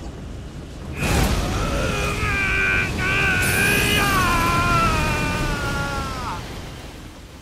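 Flames burst and roar loudly.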